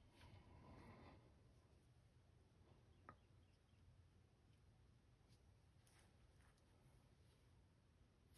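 Hands rustle softly against a cloth.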